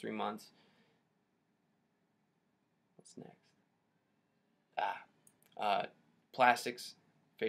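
A young man speaks close to a microphone in short, halting bursts.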